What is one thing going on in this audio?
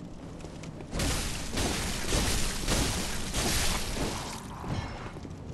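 Heavy blows slash and thud in a fierce fight.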